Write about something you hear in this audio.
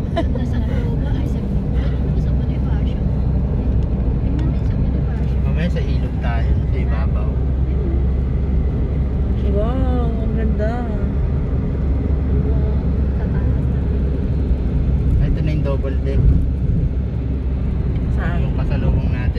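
A car drives along a highway with a steady low engine and road rumble heard from inside.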